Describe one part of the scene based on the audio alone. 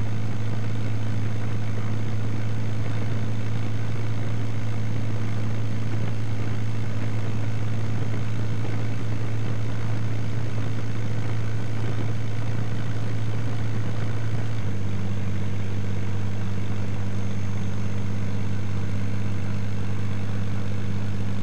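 Small propeller plane engines drone steadily nearby.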